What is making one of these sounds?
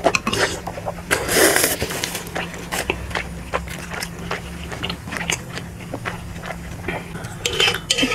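A man chews food wetly and loudly close to a microphone.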